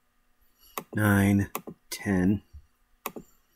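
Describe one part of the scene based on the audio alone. A man speaks briefly and with animation into a close microphone.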